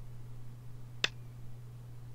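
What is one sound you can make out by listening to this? A game stone clicks sharply onto a board.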